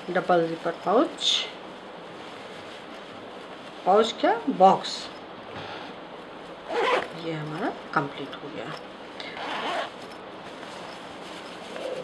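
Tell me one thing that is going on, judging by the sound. Fabric rustles softly as it is handled and folded.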